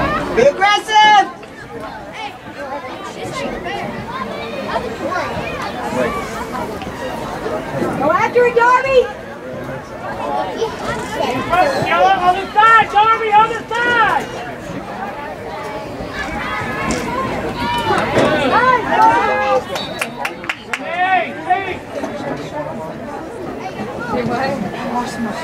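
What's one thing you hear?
Spectators cheer and shout outdoors from the sidelines.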